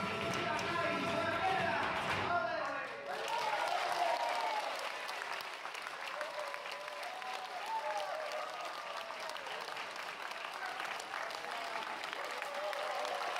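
An audience cheers and claps steadily.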